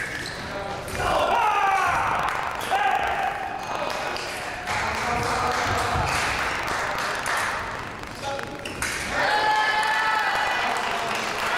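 Sports shoes squeak sharply on a hard floor as fencers lunge and retreat.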